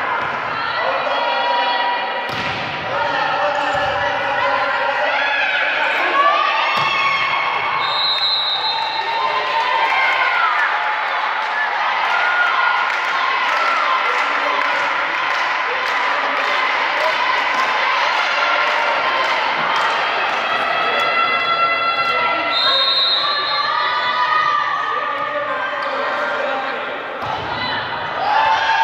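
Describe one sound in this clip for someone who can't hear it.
Young women shout and cheer loudly in a large echoing hall.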